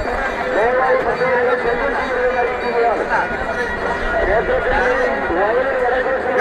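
A crowd of men chatters and calls out loudly outdoors.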